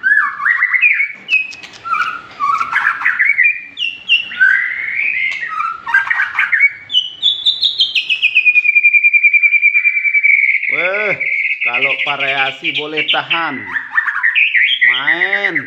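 A small caged bird sings loudly with fast, varied chirps and trills.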